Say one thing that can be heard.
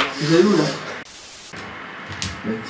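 Static hisses briefly.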